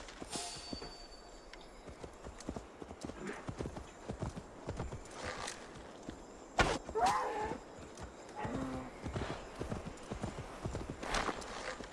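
A horse gallops, hooves thudding rhythmically on the ground.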